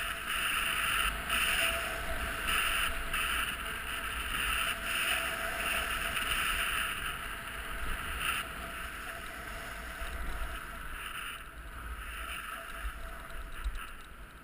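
Skis hiss and scrape steadily over packed snow.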